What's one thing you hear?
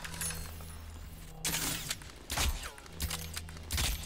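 A bowstring snaps as an arrow is fired.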